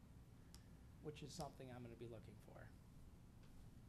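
A middle-aged man speaks briefly and calmly into a microphone.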